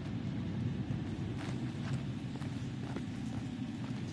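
Footsteps tread softly on a rocky floor.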